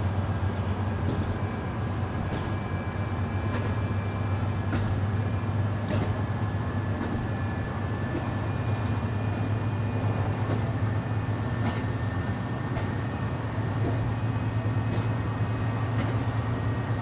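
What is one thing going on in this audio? A train engine drones steadily with a low hum.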